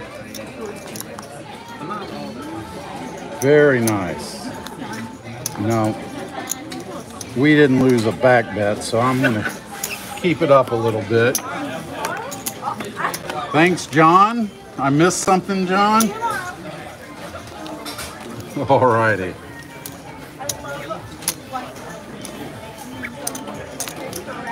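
Casino chips click and clatter together.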